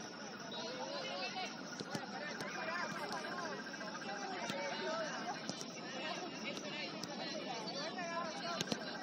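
Young women shout and call to each other across an open outdoor field.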